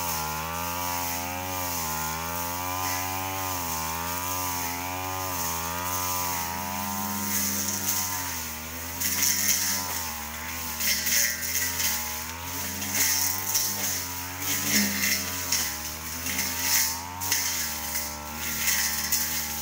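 A string trimmer engine drones and wavers in pitch.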